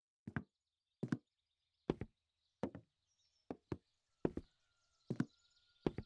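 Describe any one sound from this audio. Footsteps thud down wooden stairs at a steady pace.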